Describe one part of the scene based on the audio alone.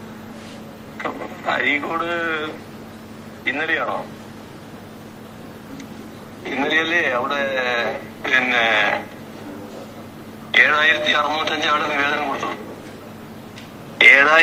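A middle-aged man speaks calmly into microphones, in short phrases with pauses.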